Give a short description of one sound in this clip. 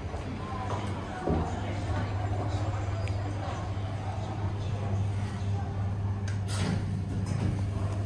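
An elevator hums steadily as it runs.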